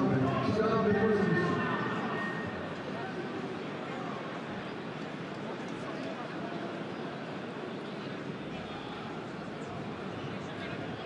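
A large stadium crowd roars and chants outdoors.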